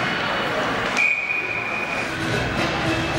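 A referee's whistle blows a sharp steady blast.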